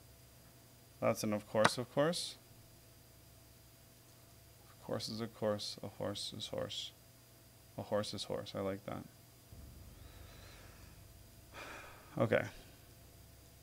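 A man speaks calmly in short bursts close to a microphone.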